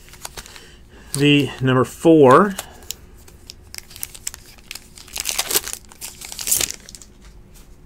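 A foil card wrapper crinkles and tears open in someone's hands.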